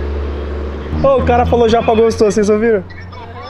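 A young man laughs and talks excitedly nearby.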